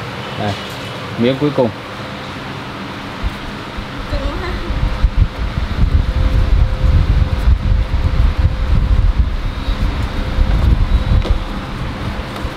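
A towel rustles as gloved hands rub it.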